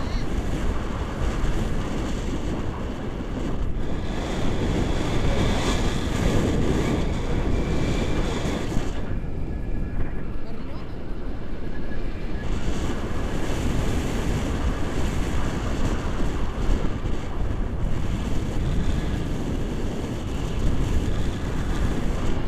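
Strong wind rushes loudly past the microphone.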